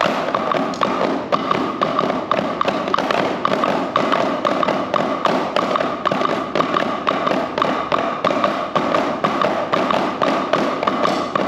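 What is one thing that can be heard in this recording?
Children beat a quick, steady rhythm on drums.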